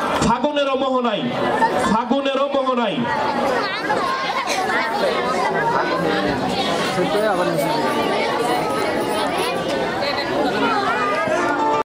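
Music with singing plays loudly through loudspeakers.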